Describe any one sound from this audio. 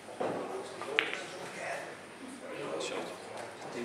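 Pool balls clack together and roll across the table.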